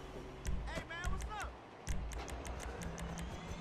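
Short electronic clicks tick in quick succession.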